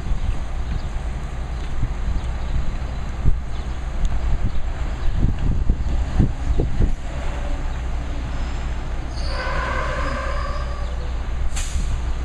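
A truck engine rumbles on the street.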